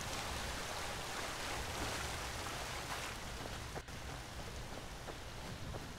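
A man talks calmly into a close microphone.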